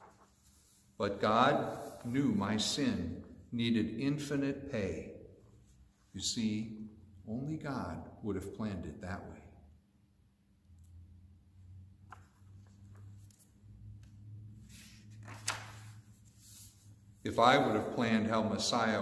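A middle-aged man reads aloud calmly and closely through a headset microphone.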